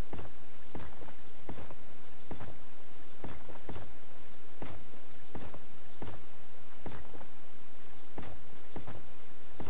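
Footsteps fall at a steady walking pace.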